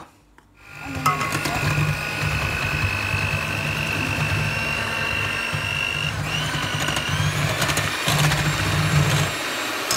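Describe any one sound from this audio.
An electric hand mixer whirs steadily, its beaters whisking in a metal bowl.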